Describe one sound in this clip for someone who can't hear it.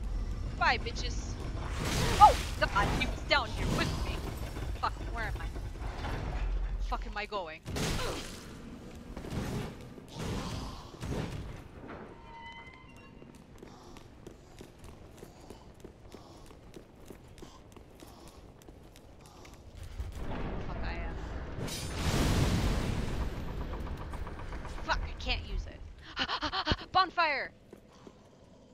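A young woman talks into a headset microphone.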